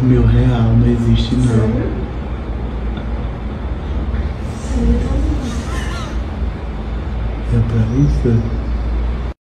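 A man snores loudly and deeply close by.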